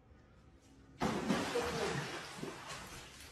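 Water splashes as an animal falls into a pool.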